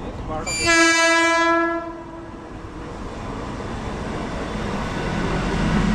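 A train rumbles closer and grows louder.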